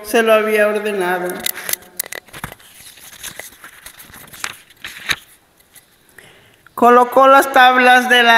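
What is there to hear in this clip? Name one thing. An elderly woman chants in long, drawn-out tones through a microphone.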